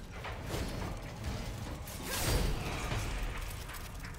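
Heavy blows crash during a fight.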